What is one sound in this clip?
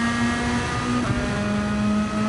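A racing car engine briefly drops in pitch as a gear shifts up.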